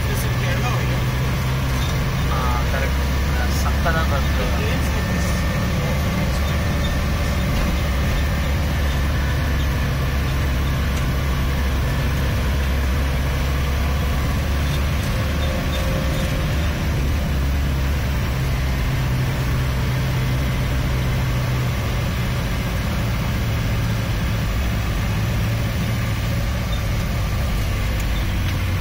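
Rain patters on a car's windshield.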